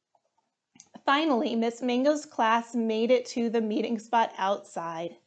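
A young woman reads aloud with animation, close to a microphone.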